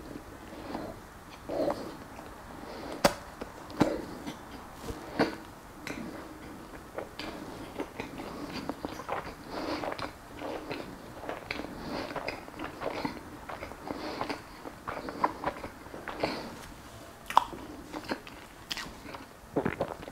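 A man chews food loudly with his mouth open, close by.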